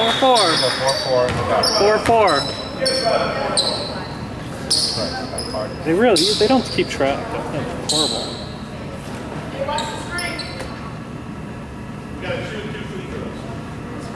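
Young players and spectators shout in a large echoing hall.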